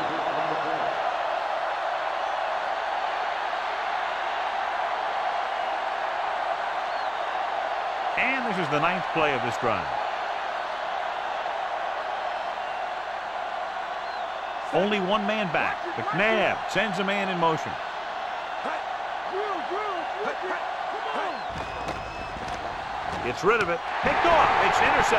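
A large crowd roars steadily in a big stadium.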